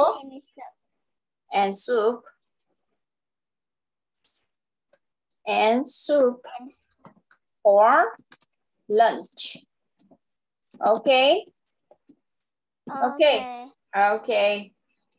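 A young girl answers over an online call, repeating words slowly.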